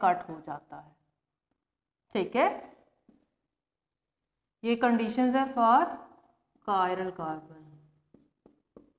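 A woman speaks calmly and explains, close to the microphone.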